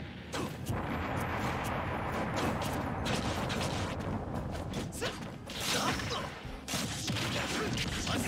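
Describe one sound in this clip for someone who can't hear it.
Fast-paced game music plays throughout.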